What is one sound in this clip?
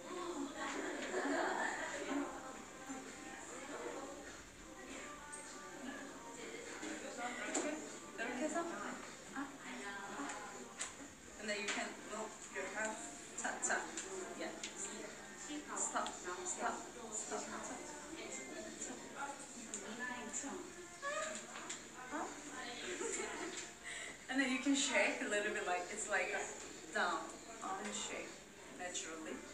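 Young women talk and laugh with animation, heard through a phone's microphone.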